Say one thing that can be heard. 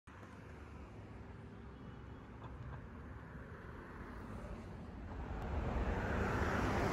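Traffic rumbles past on a busy road outdoors.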